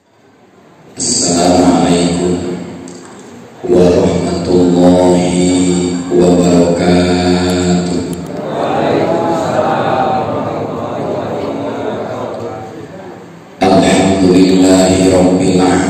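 A man chants in a long, drawn-out voice through a loudspeaker microphone.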